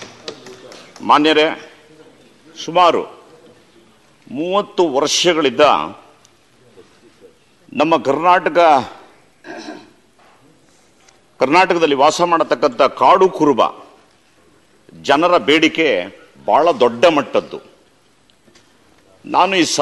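A middle-aged man speaks with animation into a microphone in a large hall, in short bursts with pauses.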